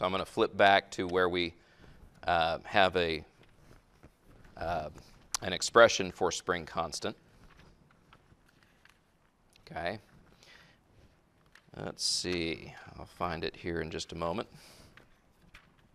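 A man lectures calmly into a close microphone, in bursts with pauses.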